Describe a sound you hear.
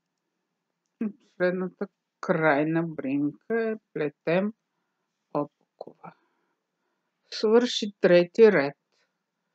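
A woman talks calmly close to the microphone.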